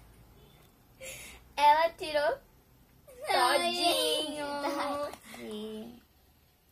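A young girl laughs and speaks cheerfully, close by.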